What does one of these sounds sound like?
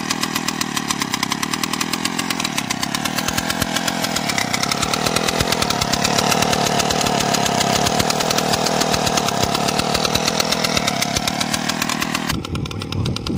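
A small motor engine idles close by with a rapid, buzzing putter.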